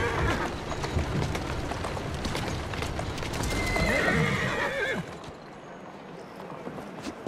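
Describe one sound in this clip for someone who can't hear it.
The wheels of a horse-drawn carriage rumble over cobblestones.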